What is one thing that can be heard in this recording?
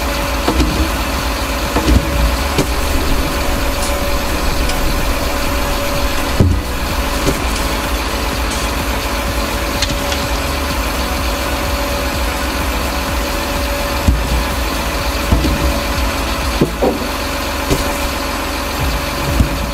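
A diesel engine hums steadily.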